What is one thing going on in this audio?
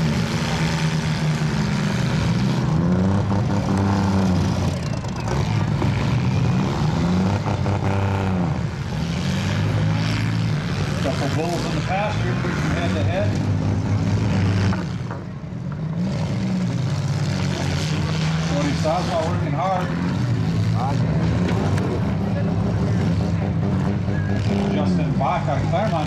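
Car engines rev and roar loudly outdoors.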